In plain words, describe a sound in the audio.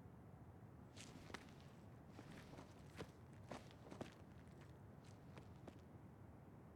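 Footsteps scuff on hard pavement.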